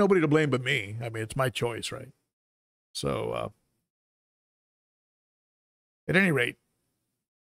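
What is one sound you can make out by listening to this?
An older man speaks with animation, close to a microphone.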